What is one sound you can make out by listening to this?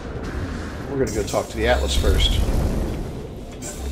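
A loud energy blast whooshes and crackles.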